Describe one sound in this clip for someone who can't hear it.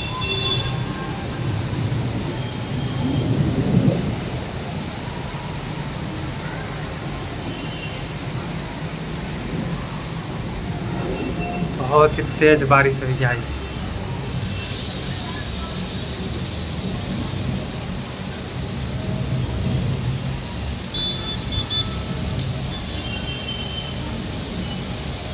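Wind gusts through leafy trees.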